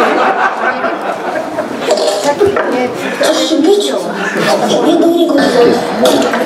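A group of young people chatter in the background.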